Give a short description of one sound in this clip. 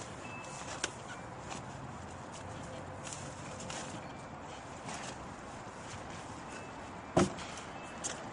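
Clothing rustles softly.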